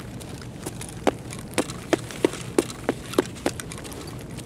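Footsteps crunch on a gritty concrete floor.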